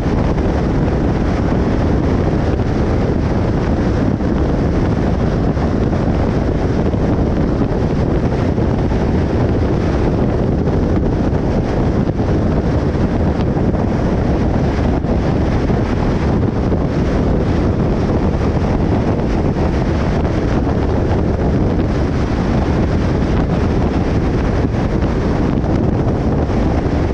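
Road noise and wind roar steadily from a car driving fast on a highway.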